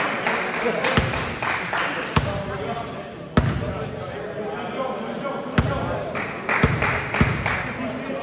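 A basketball bounces on a hard floor with sharp thuds.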